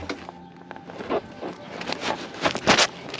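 A fuel nozzle clicks and clatters against a motorcycle's tank.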